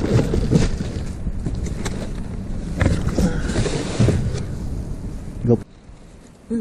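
Plastic bags and cardboard rustle and crinkle up close as they are handled.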